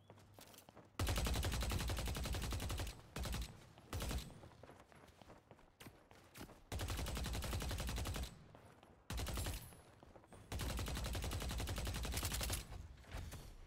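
Rapid gunfire bursts loudly in quick rattling volleys.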